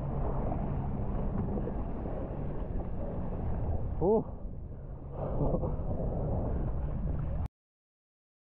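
Water rushes and splashes under a moving board.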